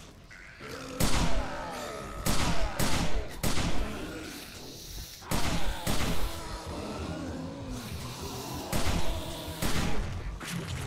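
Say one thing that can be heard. Gunshots fire in loud, quick bursts.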